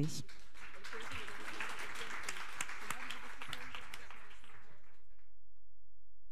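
An audience applauds in a large room, then the applause dies away.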